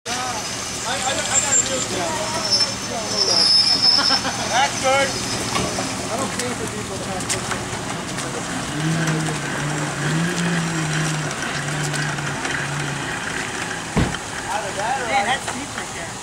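Water splashes as a man wades through a shallow stream.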